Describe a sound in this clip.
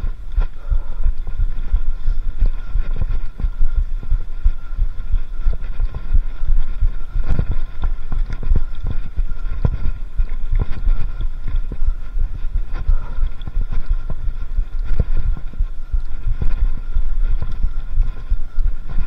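Wind rumbles against the microphone.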